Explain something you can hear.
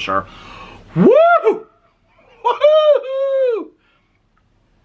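An older man lets out loud drawn-out whooping cries.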